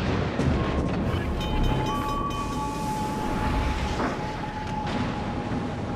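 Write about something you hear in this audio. Ship guns fire with heavy booms.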